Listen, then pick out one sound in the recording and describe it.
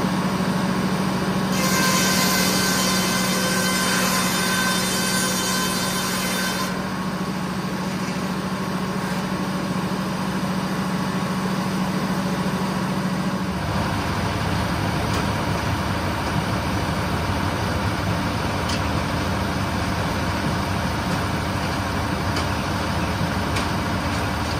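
A large circular saw whines as it spins.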